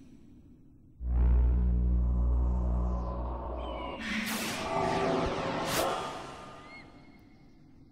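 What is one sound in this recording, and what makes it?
A magic spell swells with a deep hum and a bright shimmer.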